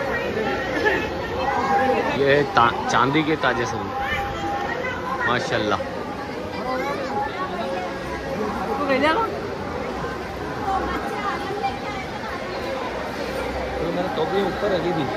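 A crowd of men and boys chatter close by.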